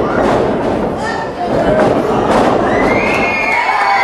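A wrestler's body slams onto a ring mat.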